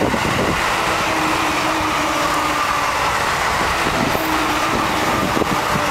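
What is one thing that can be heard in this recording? A passenger train rumbles and clatters past on its rails.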